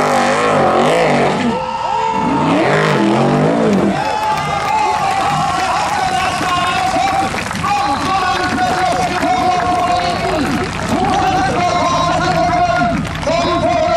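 An off-road vehicle's engine roars and revs hard, rising and falling in pitch.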